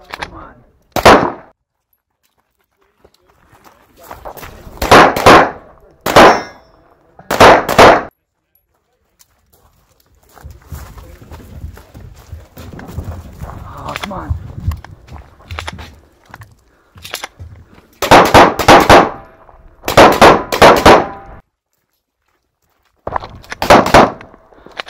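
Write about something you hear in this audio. A handgun fires sharp, loud shots in quick bursts, echoing outdoors.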